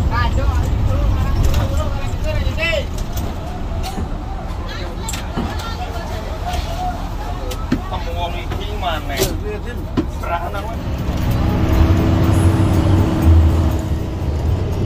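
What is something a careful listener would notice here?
A bus engine rumbles steadily, growing louder.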